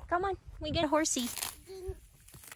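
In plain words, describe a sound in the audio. A hand pulls up grass with a rustling tear.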